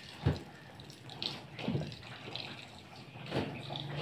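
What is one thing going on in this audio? Water pours from a tap into a bucket.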